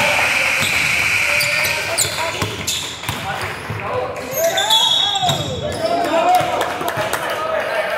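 A basketball bounces on the floor with hollow thuds.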